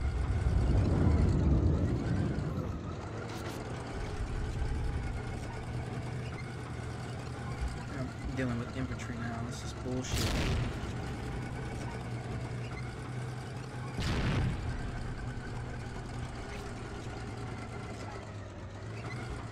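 A tank engine rumbles steadily.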